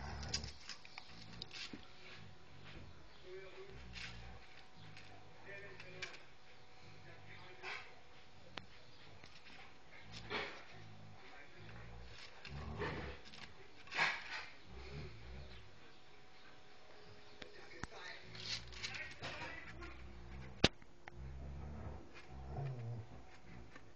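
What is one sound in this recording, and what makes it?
Two dogs growl and snarl playfully while wrestling.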